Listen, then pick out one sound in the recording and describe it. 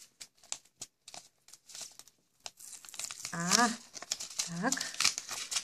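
A foil packet crinkles and tears.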